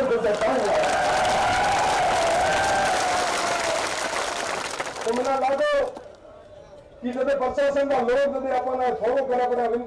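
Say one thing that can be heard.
A young man shouts forcefully into a microphone over loudspeakers.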